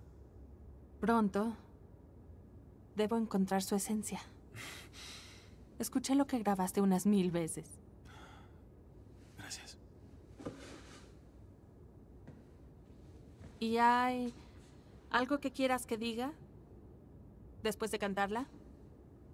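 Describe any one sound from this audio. A woman speaks warmly and close by.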